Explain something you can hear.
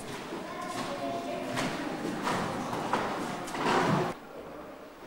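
Footsteps tread across a wooden floor nearby.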